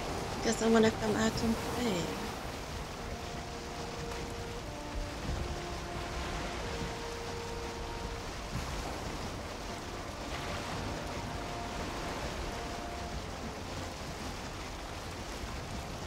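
Heavy rain pours down in a storm.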